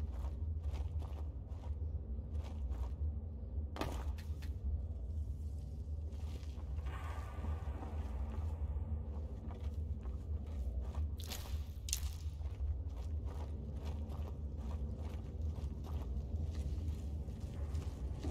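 Footsteps crunch steadily over dirt and wooden planks.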